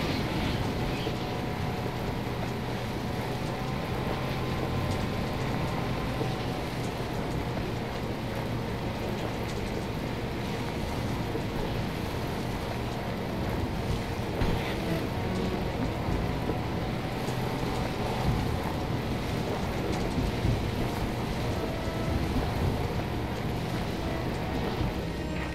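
Tyres roll over a rough dirt road.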